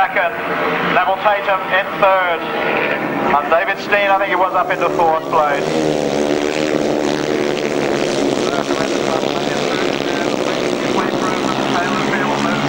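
Motorcycle engines roar and rev loudly as they race past.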